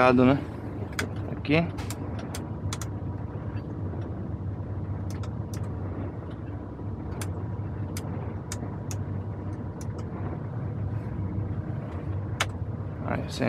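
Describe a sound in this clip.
Switches click sharply on a dashboard.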